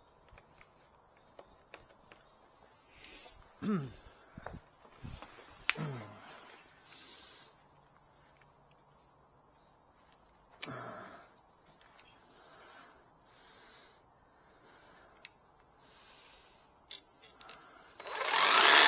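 Plastic parts click and knock as a tool is handled.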